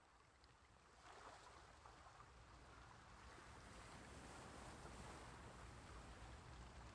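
Waves wash against a moving ship's hull.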